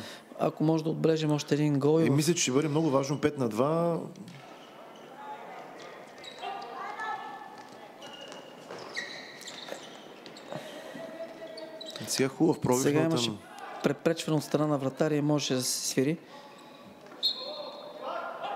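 Hockey sticks clack against a ball in an echoing hall.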